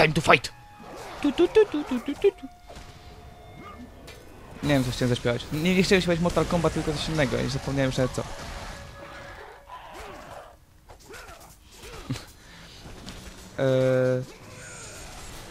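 Chained blades swish and strike with sharp metallic hits.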